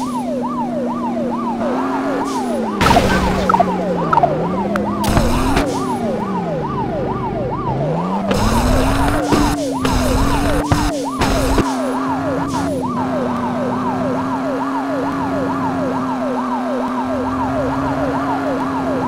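A police siren wails in rapid, repeating sweeps.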